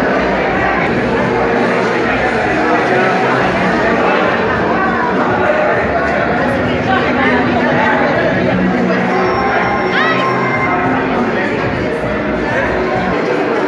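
Slot machines chime and jingle electronically.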